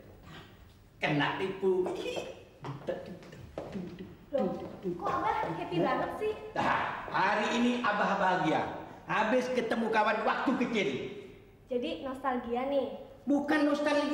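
A man speaks loudly and with animation.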